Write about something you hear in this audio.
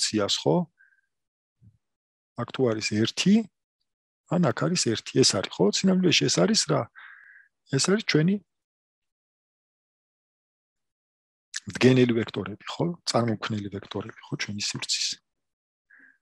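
A man speaks calmly in bursts, close to a microphone.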